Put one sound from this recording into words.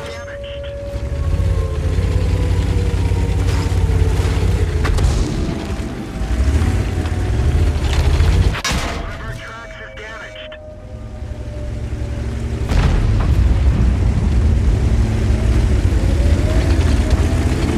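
A tank engine rumbles and roars as it drives.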